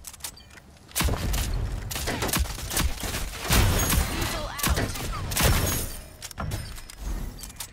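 Rifle shots crack loudly in quick bursts.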